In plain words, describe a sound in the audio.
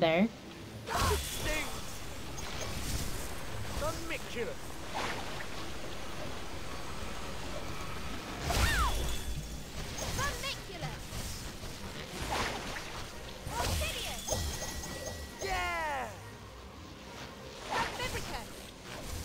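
Magic blasts whoosh and crackle in quick bursts.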